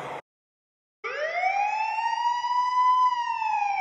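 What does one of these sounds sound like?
A siren wails close by, rising and then holding steady.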